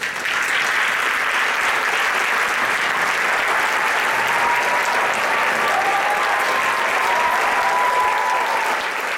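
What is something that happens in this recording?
A large band plays loudly in an echoing hall, heard from the audience.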